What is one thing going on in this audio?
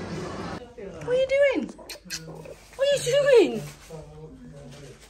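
A cat meows close by.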